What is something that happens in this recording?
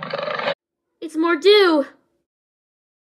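A young girl speaks in a questioning tone.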